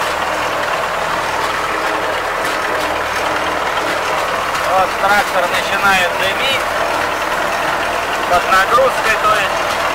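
A tractor engine drones steadily up close.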